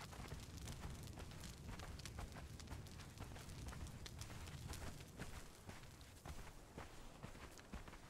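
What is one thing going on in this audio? Quick footsteps patter on sand.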